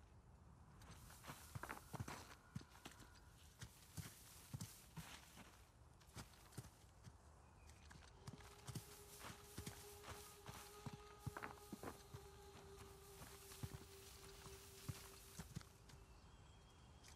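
Footsteps patter quickly over grass and stone.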